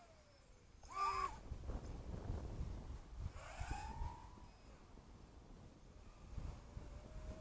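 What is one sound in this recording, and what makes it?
Wind buffets and rumbles outdoors.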